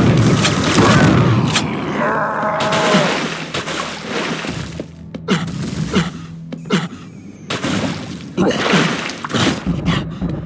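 Footsteps thud quickly across hard floors in a game.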